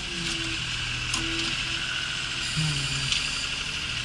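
Hydraulics whine as a tractor's front loader moves.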